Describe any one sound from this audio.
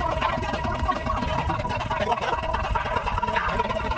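Two young men laugh loudly together.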